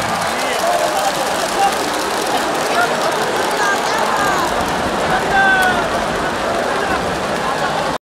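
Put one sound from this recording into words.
A large stadium crowd chatters and cheers steadily, with voices calling out.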